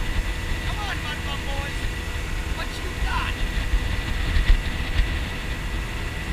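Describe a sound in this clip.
Wind rumbles loudly over a moving boat.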